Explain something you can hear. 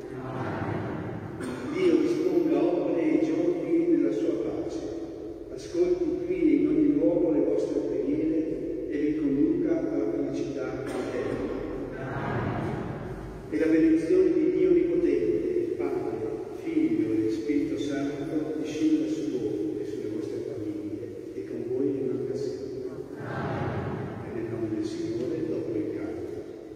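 An elderly man chants through a microphone in a large echoing hall.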